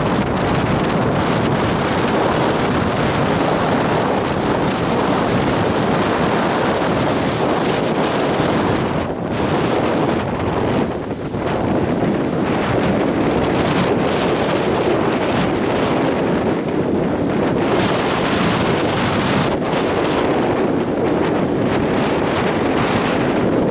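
Surf crashes and roars steadily close by.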